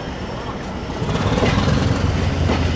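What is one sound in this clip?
Train wheels clatter over rail joints as the unit passes close by.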